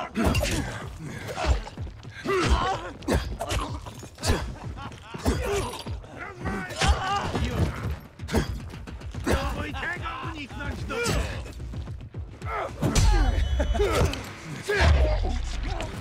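Melee weapons thud and slash into game enemies.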